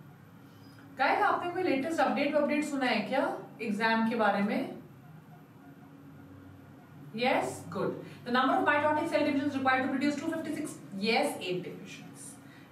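A woman speaks.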